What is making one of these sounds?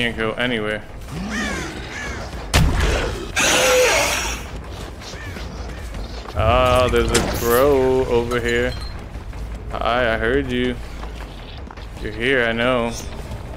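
A man talks with animation into a close microphone.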